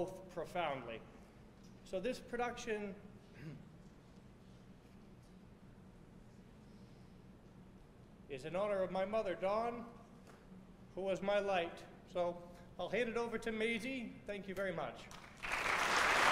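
A man speaks into a microphone in a large hall, pausing between phrases.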